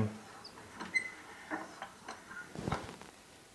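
Small objects clink and rattle on a shelf.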